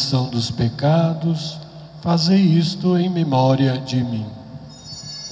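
A man chants through a loudspeaker in a large echoing hall.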